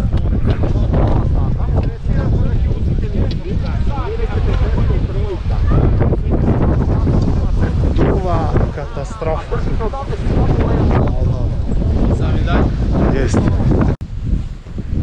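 A young man speaks close to the microphone over the wind.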